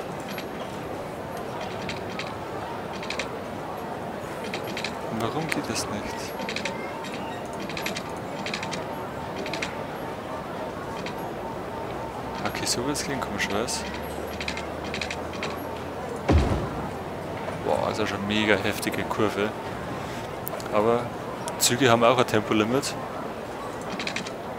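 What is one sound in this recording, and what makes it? Soft game clicks sound as road pieces are placed.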